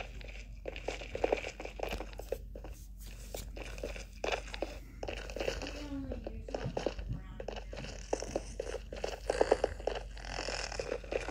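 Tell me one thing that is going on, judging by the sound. Lava bubbles and pops softly.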